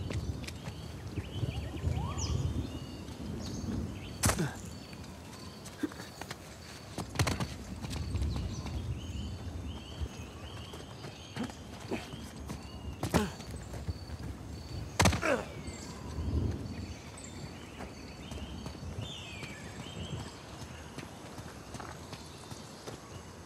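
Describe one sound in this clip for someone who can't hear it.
Footsteps fall on stone.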